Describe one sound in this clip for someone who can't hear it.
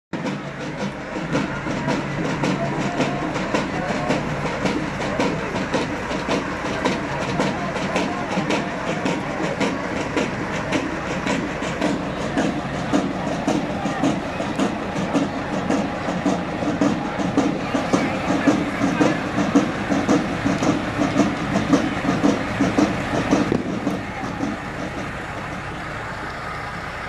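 A crowd of onlookers chatters outdoors.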